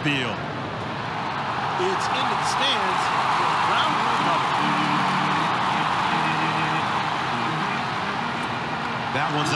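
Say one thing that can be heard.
A stadium crowd roars and cheers.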